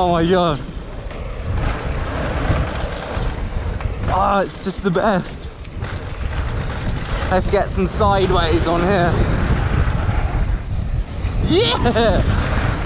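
Bicycle tyres roll and crunch over a dirt and gravel trail.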